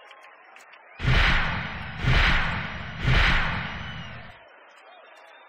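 Three deep booming thuds sound one after another, each ringing out and fading.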